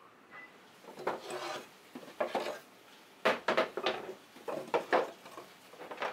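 Wooden tool handles knock and clatter against a wooden rack.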